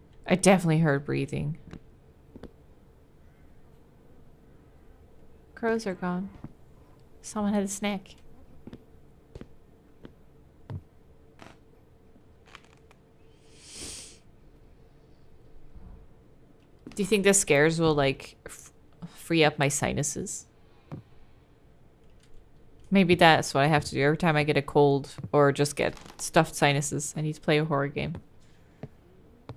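A young woman talks with animation into a microphone, in short bursts.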